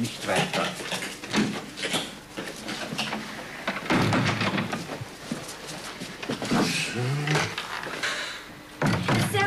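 An elderly man speaks nearby.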